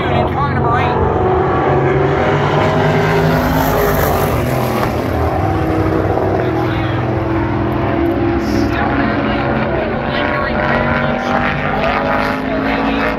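A crowd murmurs and chatters outdoors nearby.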